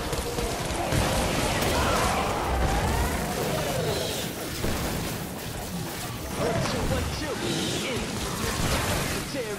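An energy gun fires rapid zapping shots.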